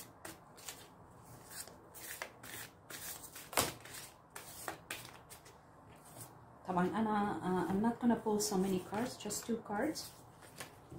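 Playing cards riffle and flick as they are shuffled by hand.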